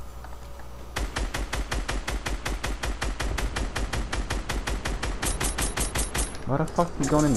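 A rifle fires rapidly in a long burst of shots.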